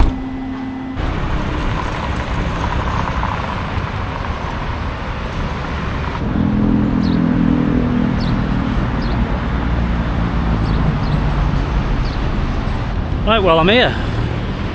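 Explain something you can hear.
Traffic rumbles steadily along a busy road outdoors.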